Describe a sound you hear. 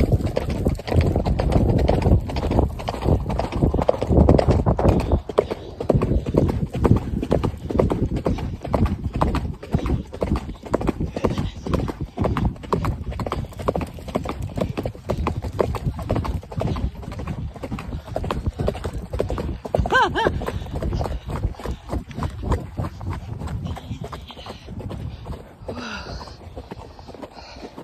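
Wind rumbles loudly against a close microphone.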